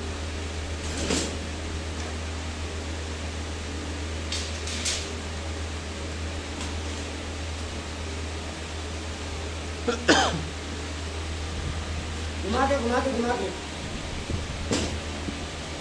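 Metal grating clanks as it is set into a steel channel.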